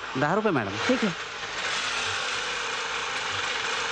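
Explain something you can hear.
An auto-rickshaw engine idles.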